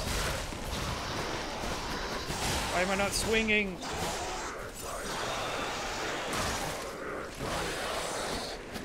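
Weapons clash and slash in a fight.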